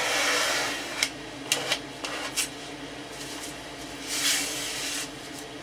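A plastic sheet crinkles and rustles in hands.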